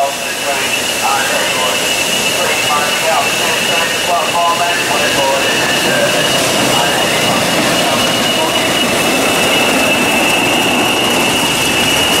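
A diesel locomotive engine rumbles as it passes close by.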